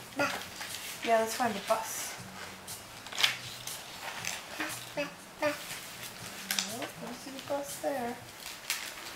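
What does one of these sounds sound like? A toddler babbles in a high voice close by.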